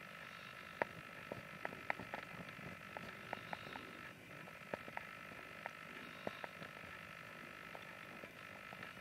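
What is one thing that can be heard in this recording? A small animal laps up liquid with quick wet clicks.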